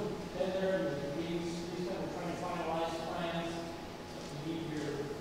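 A congregation of men and women sings together in a large, echoing hall.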